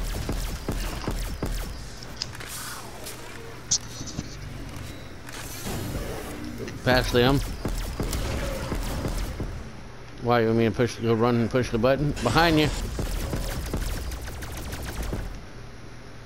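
A futuristic gun fires rapid bursts of shots.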